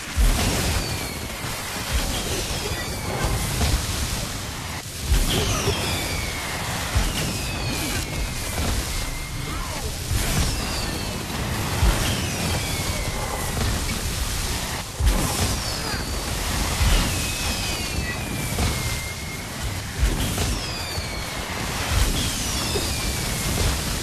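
Whooshing effects sweep down in pitch again and again.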